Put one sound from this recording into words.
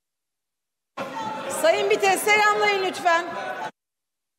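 A middle-aged woman speaks firmly through a microphone in a large echoing hall.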